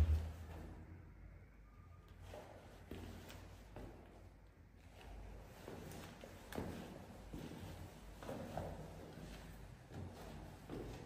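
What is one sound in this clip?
Shoes tap and scuff on a hard tiled floor.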